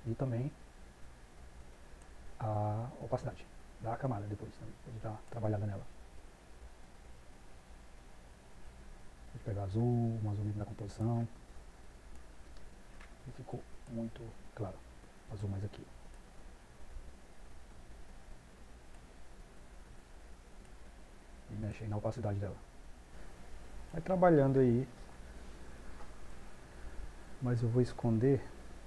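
A man speaks calmly into a close microphone, pausing often.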